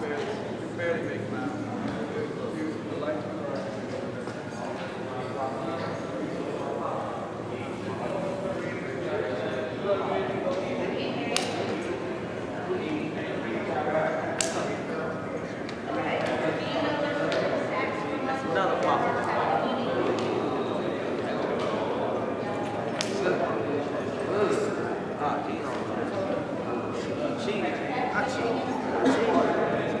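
A group of young men talk over one another in a large echoing hall.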